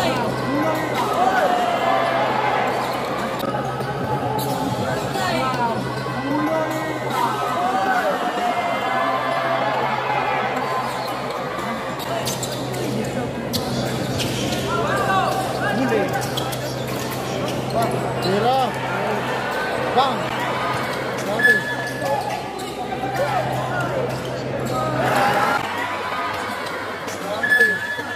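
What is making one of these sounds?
A large crowd cheers and chatters in an echoing hall.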